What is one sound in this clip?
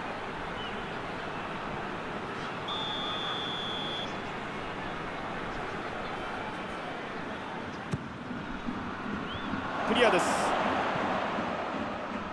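A large stadium crowd roars steadily, swelling louder for a moment.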